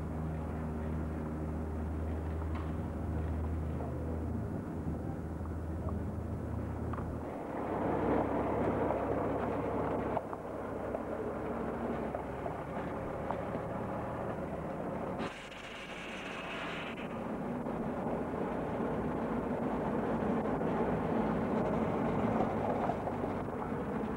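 A heavy truck's tyres crunch slowly over gravel.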